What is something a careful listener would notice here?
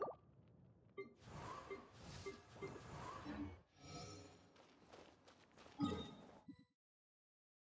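A sword swings and strikes with loud combat effects.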